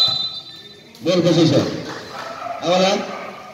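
Men shout and cheer loudly in a large echoing hall.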